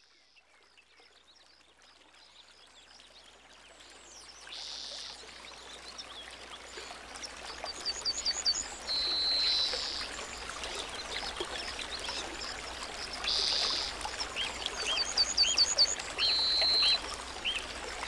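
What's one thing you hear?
A stream rushes and burbles over rocks.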